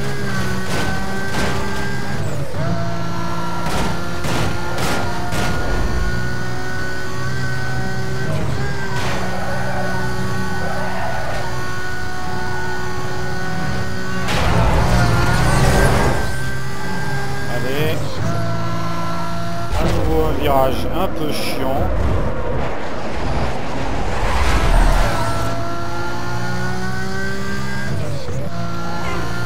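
A sports car engine roars at high revs, shifting gears as it races.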